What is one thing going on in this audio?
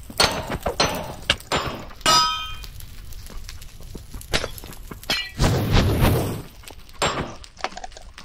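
A game's sword strikes with quick hitting sounds.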